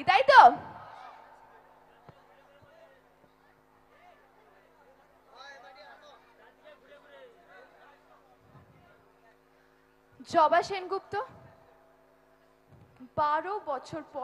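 A young woman speaks loudly and forcefully into a microphone over loudspeakers.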